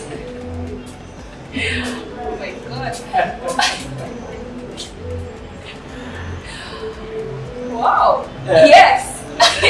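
A young woman answers into a microphone close by.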